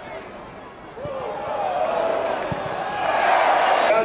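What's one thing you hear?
A crowd cheers loudly outdoors, swelling as a goal is scored.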